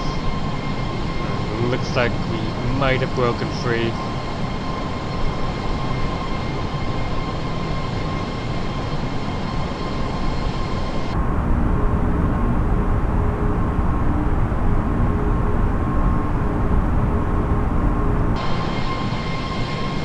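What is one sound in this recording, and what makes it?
Jet engines roar steadily outside an airliner.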